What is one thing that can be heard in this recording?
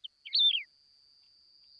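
A small bird sings short, high chirping notes.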